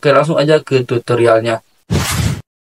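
A young man speaks to the listener through a microphone.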